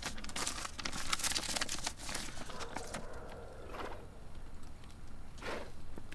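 Paper rustles as a man unfolds a letter.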